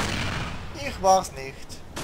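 A loud explosion booms and rumbles, then fades.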